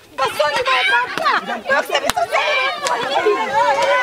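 A woman shouts angrily up close.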